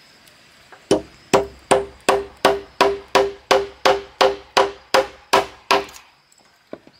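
A hammer strikes a metal nail into wood with quick, steady, ringing blows.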